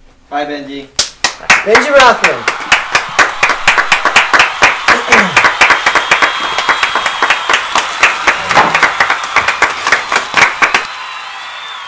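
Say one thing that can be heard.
A man claps his hands quickly and steadily.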